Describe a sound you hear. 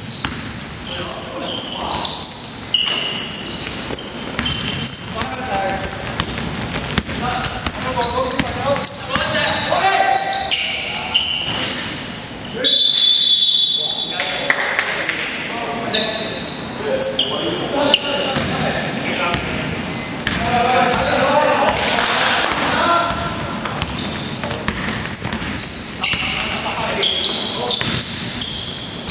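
Young men shout and call out across an echoing gym.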